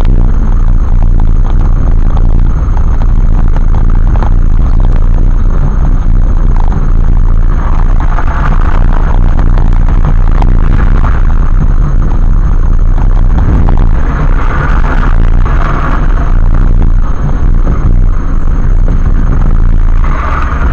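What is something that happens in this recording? A car engine hums steadily while driving on a highway.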